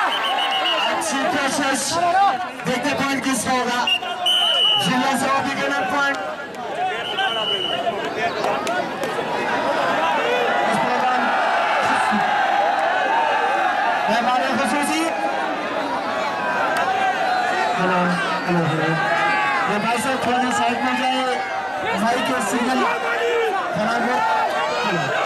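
A large outdoor crowd shouts and cheers throughout.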